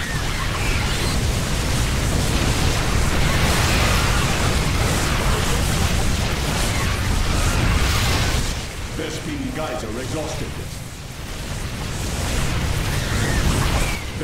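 Explosions rumble steadily in a battle.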